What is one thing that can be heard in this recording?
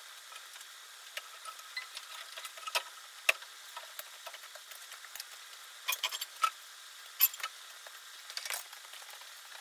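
Metal parts clink and knock as a man works on a car.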